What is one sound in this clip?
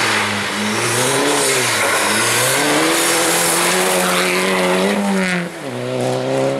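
Gravel sprays and rattles under spinning tyres.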